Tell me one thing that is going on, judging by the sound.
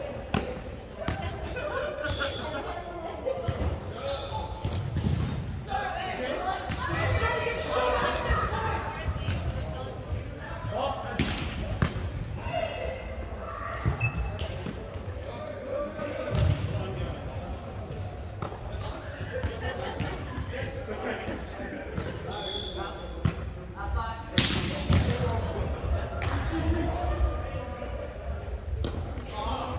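A volleyball thumps off players' arms and hands in a large echoing hall.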